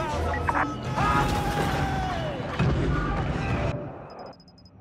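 Blasts and gunfire from a battle roar loudly.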